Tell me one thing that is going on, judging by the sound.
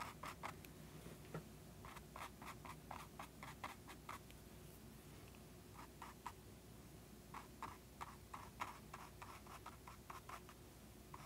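A paintbrush brushes softly across a canvas in short strokes.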